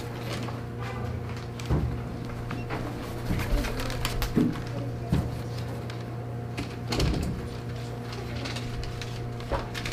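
Poster board rustles and knocks as a child sets it up.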